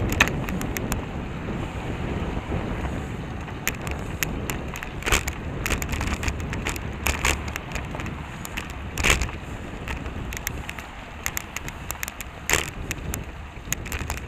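Wind buffets a microphone steadily on a moving bicycle.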